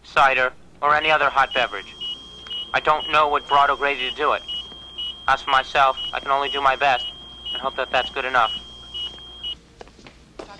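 An electronic device beeps in a rapid, even pattern.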